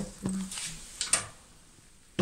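A button clicks as a finger presses it.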